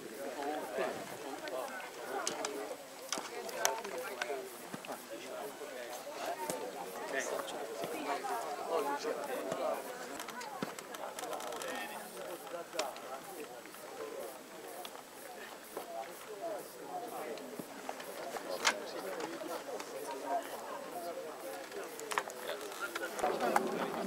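A crowd of men and women chatter close by, outdoors.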